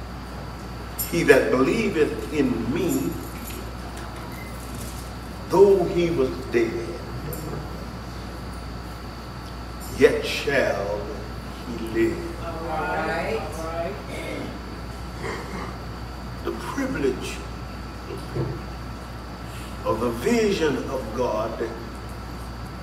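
A man preaches into a microphone in phrases, pausing between them.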